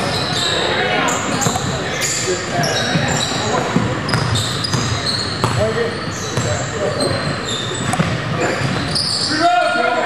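A crowd of spectators chatters in an echoing hall.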